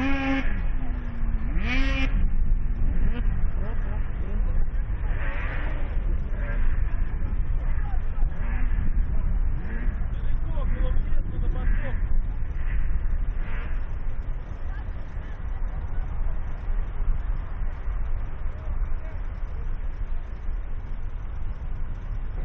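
Snowmobile engines idle with a steady low rumble outdoors.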